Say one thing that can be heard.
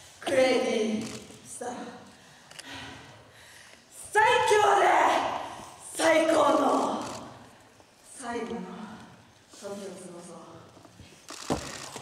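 A young woman shouts forcefully into a microphone, heard through loudspeakers in a large echoing hall.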